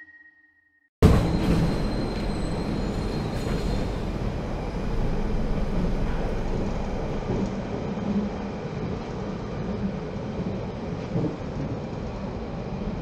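A subway train rumbles and rattles steadily along the tracks.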